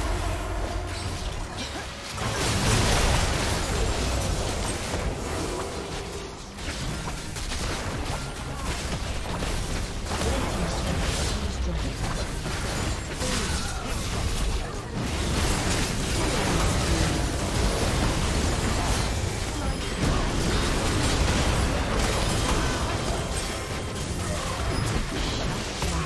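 Game spells whoosh and burst in a busy battle.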